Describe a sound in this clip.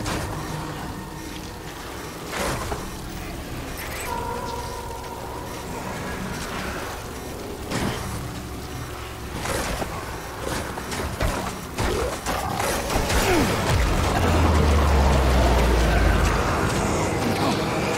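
Footsteps crunch over loose rocks.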